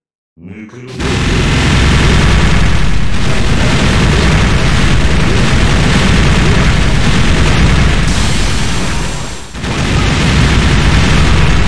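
Loud game explosions and blasts roar without pause.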